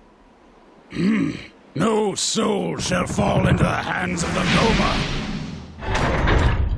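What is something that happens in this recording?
A man speaks gruffly, close up.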